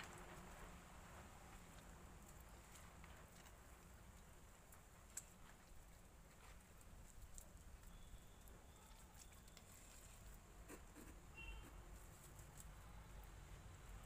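A hand scoops wet mortar with a squelch.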